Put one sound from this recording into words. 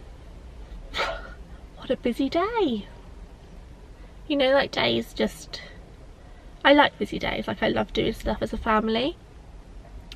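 A young woman talks casually and expressively, close by.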